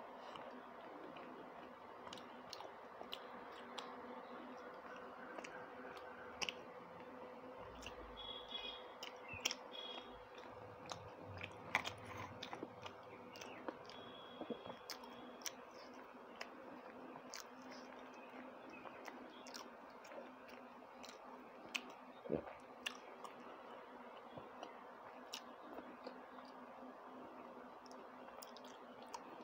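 A woman chews food wetly, close to the microphone.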